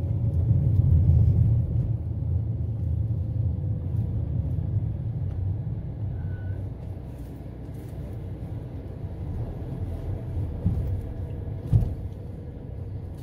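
A car engine hums low and steady while driving, slowly growing quieter.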